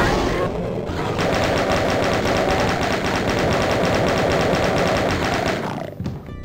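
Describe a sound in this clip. A shotgun fires loud booming blasts.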